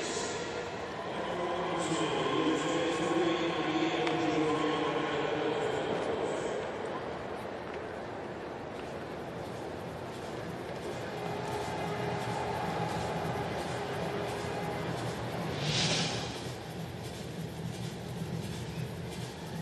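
A stadium crowd murmurs and cheers in a large open arena.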